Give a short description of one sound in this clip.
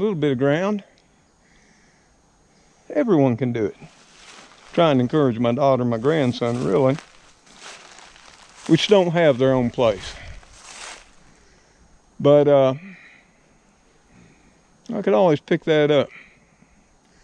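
An older man talks calmly close by, in short bursts with pauses.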